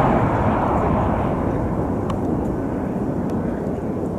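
Tyres screech briefly as an airliner touches down on a runway.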